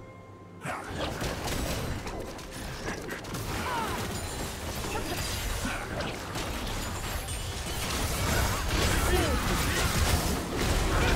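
Spell effects whoosh, zap and crackle in a busy game battle.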